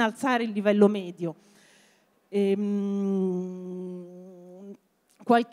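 A woman speaks into a microphone with animation, heard through a loudspeaker.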